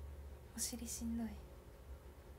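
A young woman says a few words briefly, close by.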